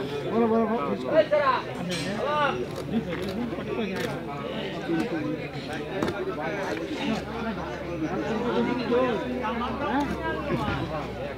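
A fixed bill-hook blade slices through raw fish flesh.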